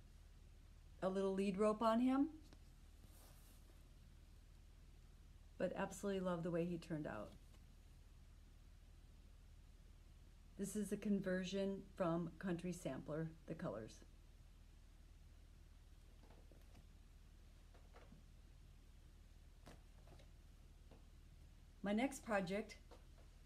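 A middle-aged woman talks calmly and close by, in short bursts.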